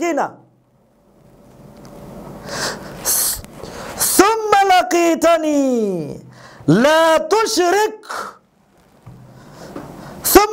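A man speaks with animation into a close microphone, his voice rising into a sung, drawn-out chant.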